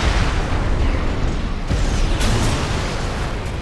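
An energy weapon fires with a loud, roaring hiss.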